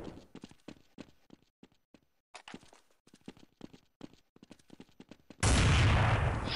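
A rifle fires loud, booming shots.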